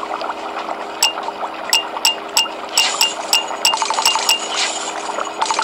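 Game coins chime quickly as a counter ticks up.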